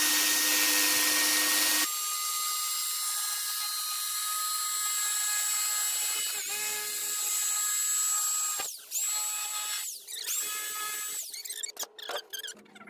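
A jigsaw cuts through a thin beadboard panel.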